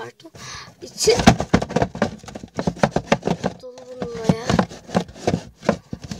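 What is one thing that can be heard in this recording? Fingers tap and knock on a cardboard box.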